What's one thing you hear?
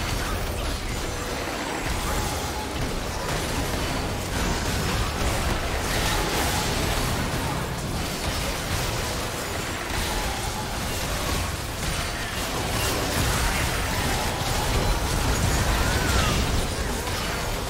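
Game spells whoosh and blast in a busy fantasy battle.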